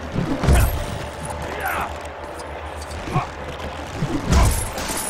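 Heavy thuds sound as blows strike objects.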